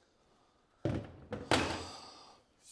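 A hammer taps on sheet metal.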